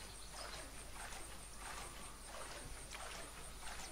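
Water splashes with swimming strokes.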